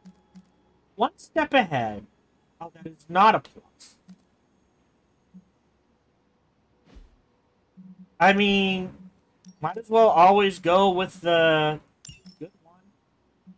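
A man speaks with animation close to a microphone, in short bursts with pauses.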